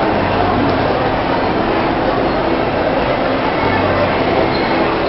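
A crowd chatters loudly, echoing through a large hall.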